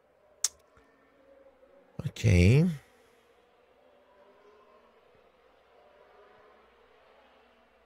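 A man talks quietly through a microphone.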